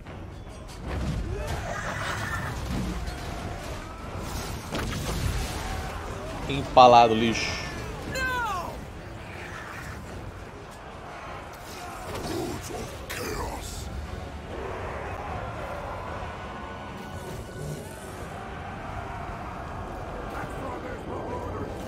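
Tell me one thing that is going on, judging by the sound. Swords clash and soldiers roar in a battle.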